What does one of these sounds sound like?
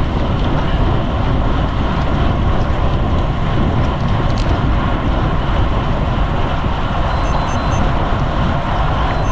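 Wind rushes loudly and steadily.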